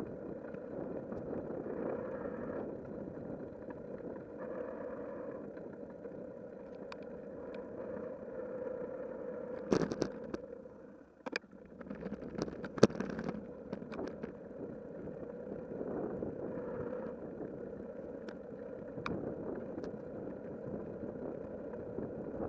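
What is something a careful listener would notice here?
Wind buffets a microphone steadily.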